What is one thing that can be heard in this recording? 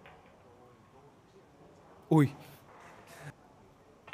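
Pool balls click together on a table.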